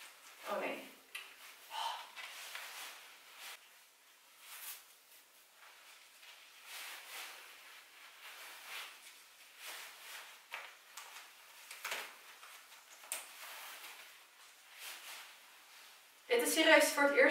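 Stiff gown fabric rustles softly as it is adjusted.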